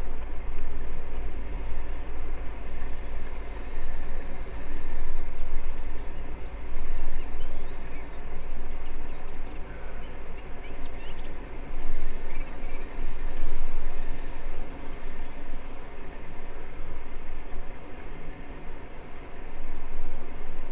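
Wind gusts and rumbles loudly outdoors.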